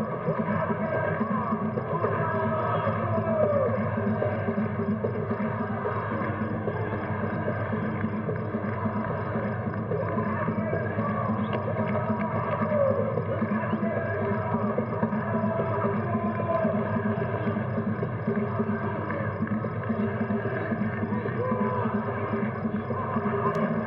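A crowd cheers steadily.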